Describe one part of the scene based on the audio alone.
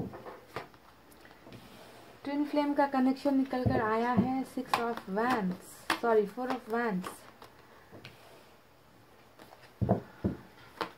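Playing cards rustle and flick as they are shuffled by hand.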